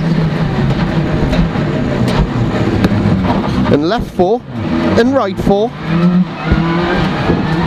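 A rally car engine roars loudly from inside the car, revving up and dropping sharply between gear changes.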